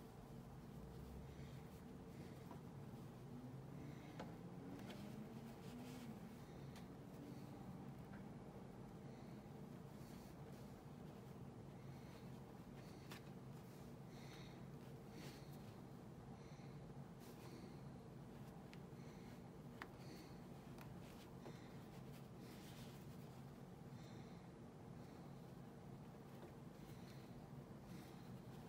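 Hands rustle softly as they handle a small felt figure.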